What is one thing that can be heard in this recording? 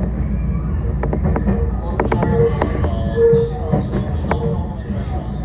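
Train wheels clatter and squeal over the rails.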